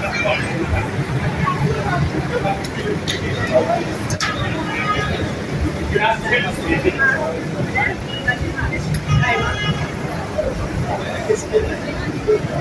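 A crowd murmurs and talks outdoors on a busy street.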